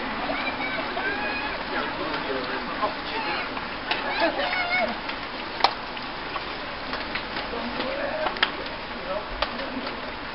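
Men and women chat and call out outdoors.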